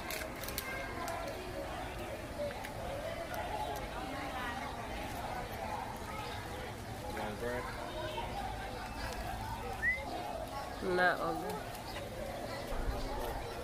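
A bird calls with harsh, chattering cries.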